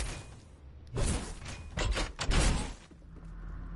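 A pickaxe strikes a wall with sharp, quick hits.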